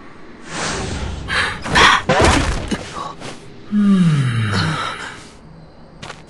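Heavy blows strike with loud swooshes and crashes.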